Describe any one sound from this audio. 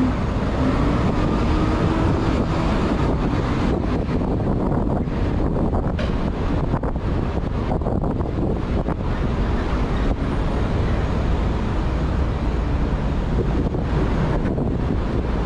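City traffic rumbles steadily nearby, outdoors.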